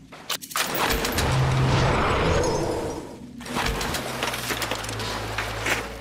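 Water sloshes and splashes underfoot.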